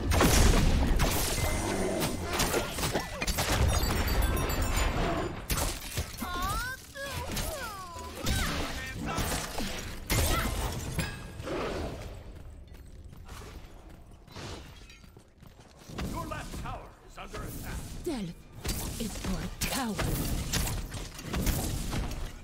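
Game spells burst and crackle in a fight.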